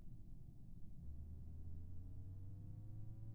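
Fuel pours into a can with a steadily rising tone.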